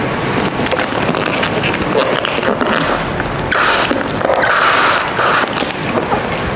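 Water sprays from a hose onto a car.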